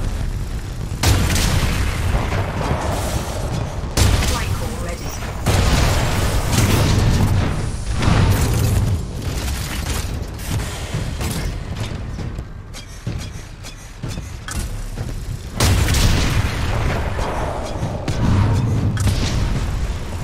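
A heavy machine gun fires in loud, rapid bursts.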